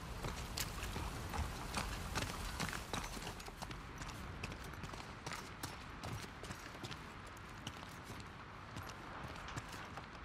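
Footsteps shuffle over a littered floor.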